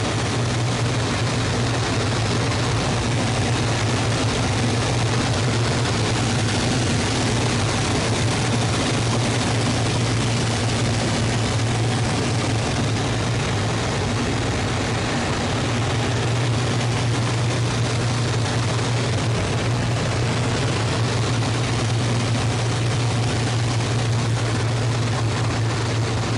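Wind rushes hard past an open cockpit.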